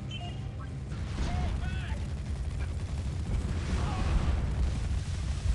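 Game gunfire and explosions rumble in a battle.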